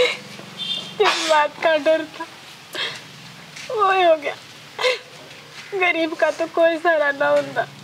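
A young woman speaks softly and with feeling, close by.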